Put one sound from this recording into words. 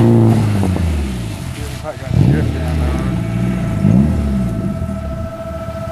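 A car engine revs in the distance.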